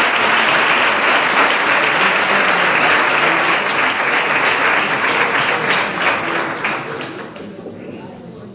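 A crowd applauds loudly in a room and then dies down.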